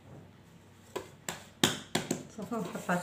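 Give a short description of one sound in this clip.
Soft dough slaps and pats against a clay dish.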